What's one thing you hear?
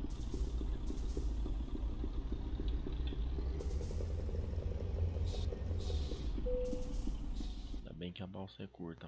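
A truck engine rumbles steadily.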